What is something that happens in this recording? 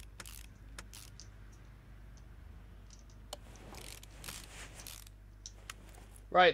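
Metal parts click and clink as bolts are tightened.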